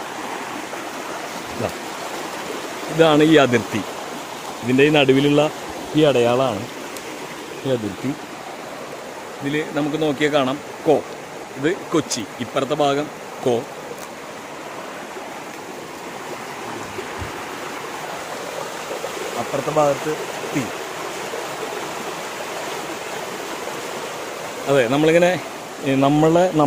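A stream rushes and splashes steadily outdoors.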